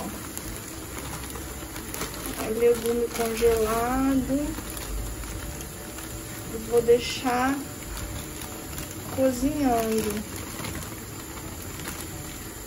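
Frozen vegetable pieces rattle and patter as they are poured into a pan.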